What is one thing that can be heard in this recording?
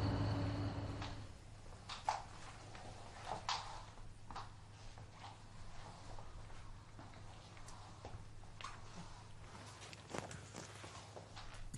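Bedsheets rustle as a man shifts in bed.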